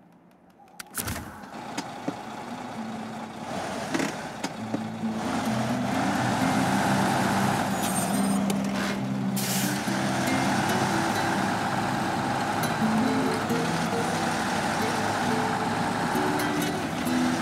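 A heavy truck engine rumbles and revs.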